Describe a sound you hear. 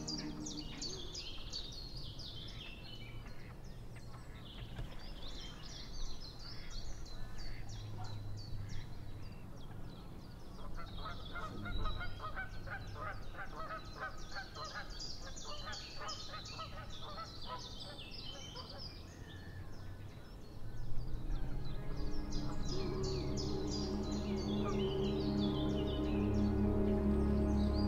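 Small waves lap gently on open water.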